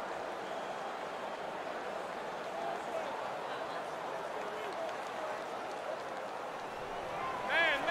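A large stadium crowd roars steadily in the distance.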